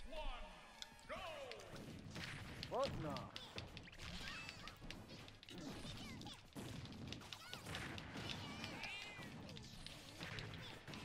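Video game punches and blasts crack and thud in quick bursts.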